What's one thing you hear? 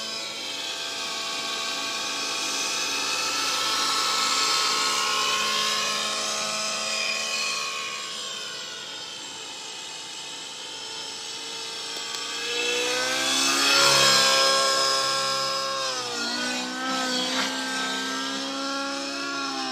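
A model helicopter's motor whines high overhead, rising and falling in pitch as it swoops past.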